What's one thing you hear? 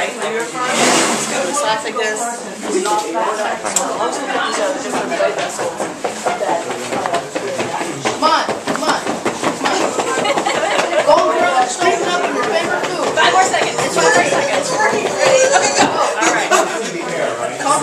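Several people talk and chatter at once in a room.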